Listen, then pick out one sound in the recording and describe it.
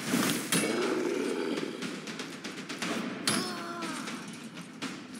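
Blades slash and strike with sharp impacts in a fantasy battle.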